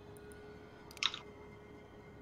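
A short interface click sounds once.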